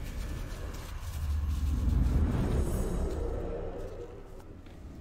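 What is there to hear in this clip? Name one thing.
A deep whooshing rush swells and then fades.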